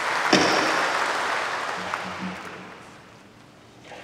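A gavel strikes a wooden block once and rings out through a large echoing hall.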